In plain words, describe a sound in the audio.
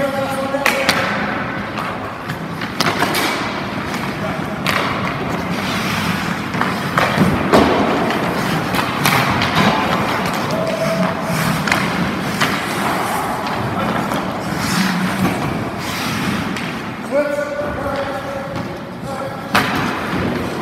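Hockey sticks crack against pucks, with sharp knocks ringing off the boards.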